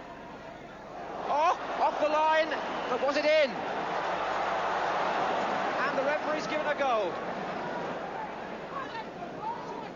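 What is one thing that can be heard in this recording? A large stadium crowd roars loudly, then the roar slowly dies down.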